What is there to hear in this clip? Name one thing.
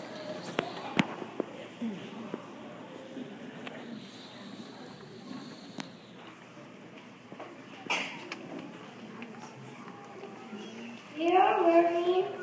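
A crowd of children chatters throughout a large echoing hall.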